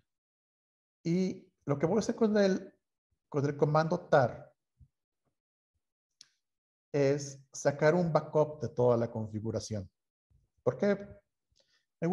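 A man speaks calmly into a close microphone, explaining.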